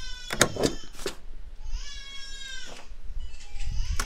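A rubber stamp thumps down onto paper.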